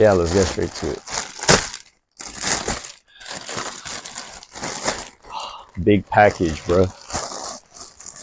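A plastic mailer bag crinkles and rustles loudly close by.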